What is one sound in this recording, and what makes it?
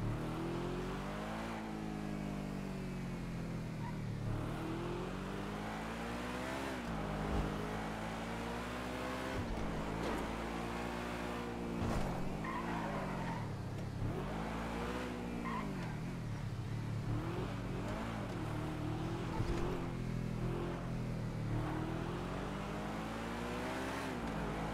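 A sports car engine revs up and down as the car speeds along, shifting gears again and again.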